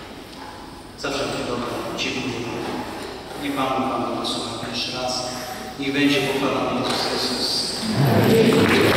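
A middle-aged man speaks calmly into a microphone, heard through loudspeakers in an echoing hall.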